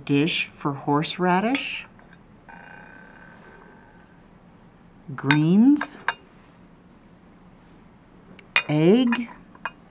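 A small ceramic dish clinks softly onto a large plate.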